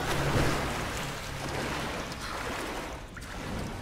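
Water splashes as someone wades through it.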